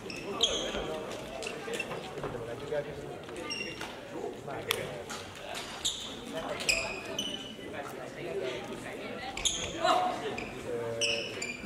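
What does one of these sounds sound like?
Sneakers squeak sharply on a hall floor, echoing.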